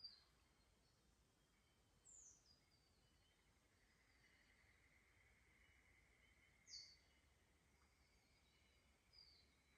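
Water trickles gently over stones in a shallow creek.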